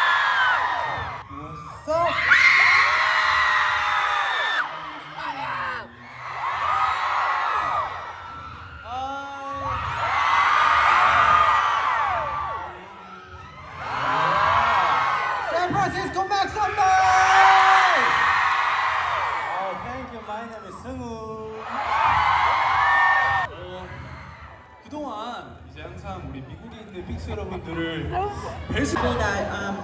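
A crowd of young women screams and cheers loudly in bursts.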